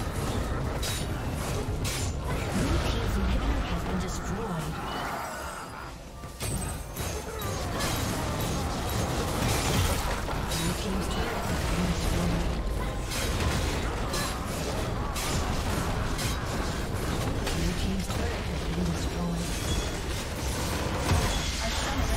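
Game spells and weapon hits crackle, whoosh and boom in a fast, busy battle.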